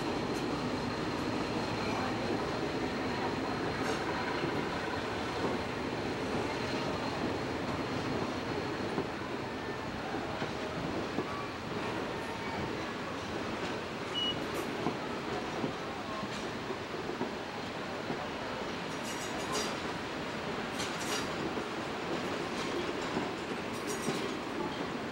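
Passenger coaches rumble past on rails.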